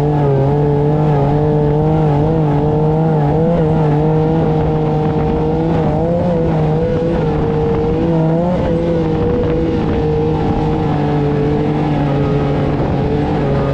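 Tyres rumble over rippled sand.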